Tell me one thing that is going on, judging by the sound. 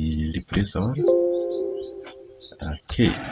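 A computer alert chimes once.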